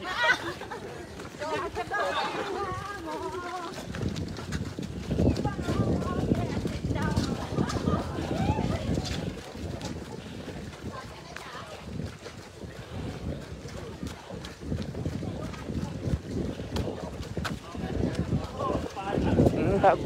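Men and women talk and call out nearby as they run.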